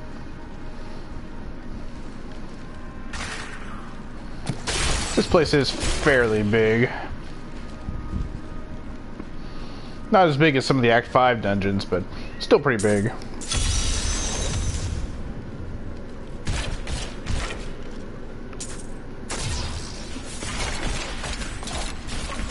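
Blades clash and strike in a fight.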